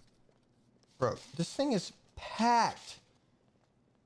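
A man speaks briefly with animation into a close microphone.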